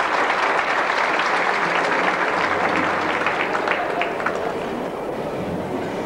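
Dancers' feet tap and shuffle on a wooden stage.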